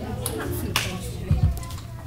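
Bare feet thump on a wooden floor.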